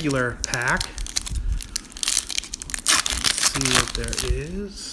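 A foil wrapper crinkles loudly as it is torn open.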